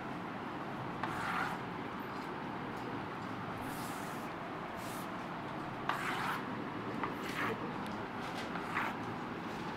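Chalk scrapes and taps on a chalkboard.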